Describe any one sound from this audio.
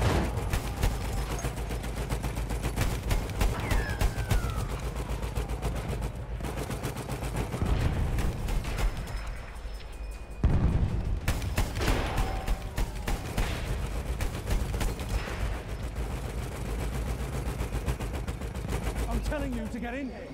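Explosions boom with deep rumbles.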